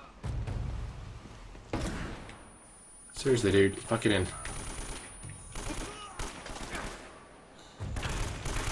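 Gunshots crack in bursts.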